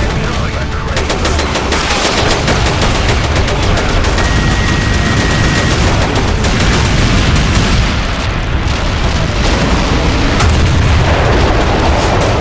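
Aircraft engines roar and hum overhead.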